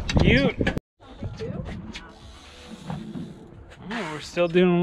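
A man speaks up close to the microphone.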